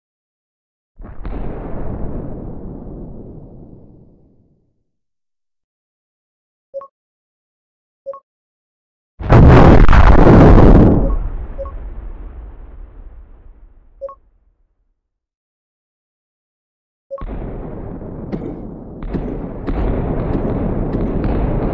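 A huge explosion booms and rumbles, then slowly fades.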